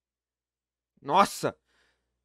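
A young man laughs briefly through a microphone.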